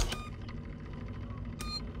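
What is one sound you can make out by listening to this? A button clicks on an emergency phone panel.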